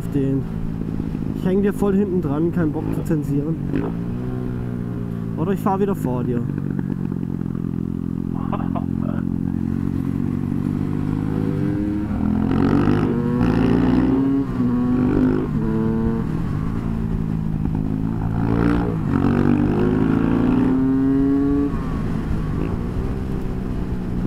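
A motorcycle engine hums and revs up and down close by.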